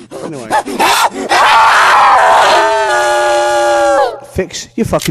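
A man screams loudly close by.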